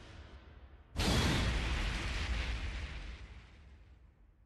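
A loud burst of roaring flames whooshes up and slowly fades.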